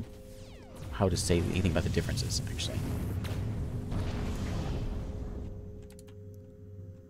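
Laser blasts and explosions rumble in a game.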